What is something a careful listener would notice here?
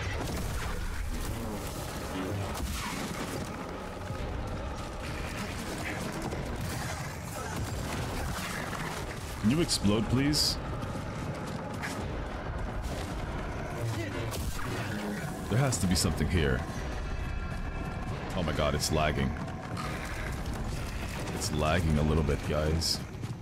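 Lightsaber blades hum and swish in a fight.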